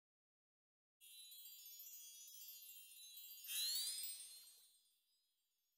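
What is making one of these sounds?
Bright chimes twinkle and rise in a quick magical jingle.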